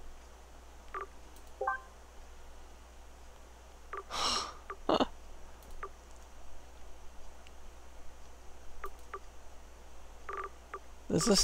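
Short electronic menu clicks tick now and then.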